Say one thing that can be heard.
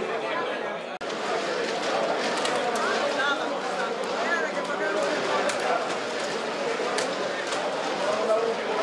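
Domino tiles click on a wooden table.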